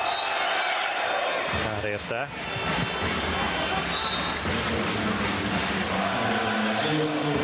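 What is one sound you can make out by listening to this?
A crowd cheers and claps in a large echoing hall.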